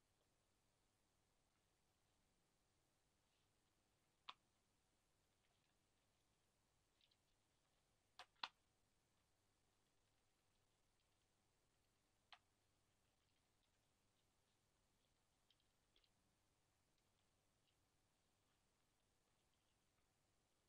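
Plastic packaging crinkles and rustles.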